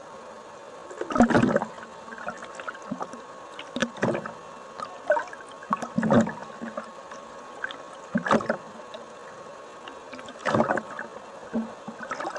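Water swirls and bubbles in muffled bursts, heard from underwater.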